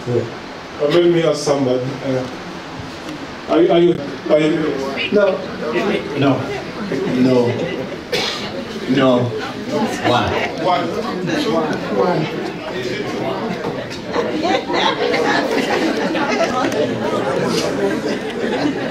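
An audience murmurs in the background.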